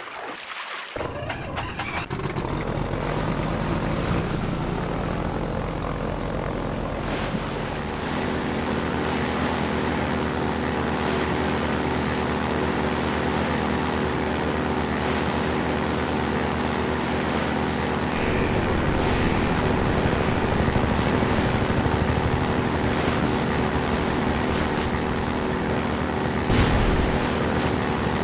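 A boat engine starts up and hums steadily.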